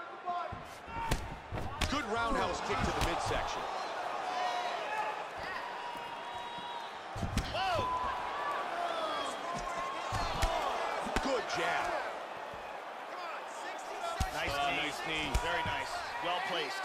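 Punches thud against bodies in quick bursts.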